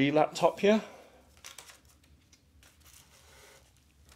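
Plastic bubble wrap crinkles as it is handled.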